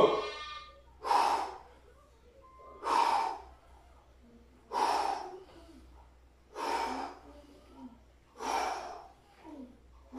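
A man breathes out sharply with each squat, in a steady rhythm.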